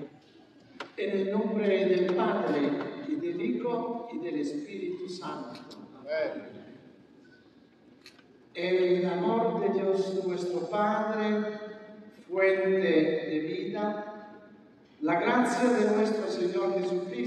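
An elderly man reads aloud steadily into a microphone, heard through loudspeakers in an echoing hall.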